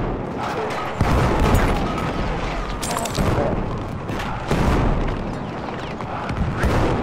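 Heavy explosions boom and rumble nearby.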